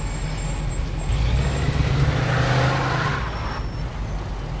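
A car engine revs as the car pulls away.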